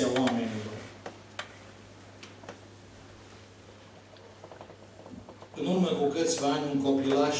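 A middle-aged man speaks steadily into a microphone in an echoing hall.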